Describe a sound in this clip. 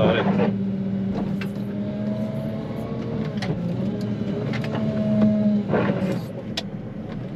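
A snow plough blade scrapes and pushes snow.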